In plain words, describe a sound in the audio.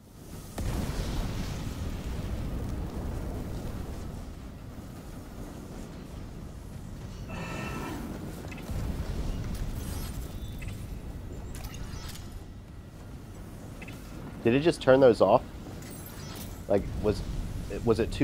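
Flames roar steadily nearby.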